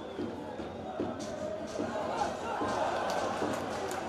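A crowd cheers and shouts in a stadium.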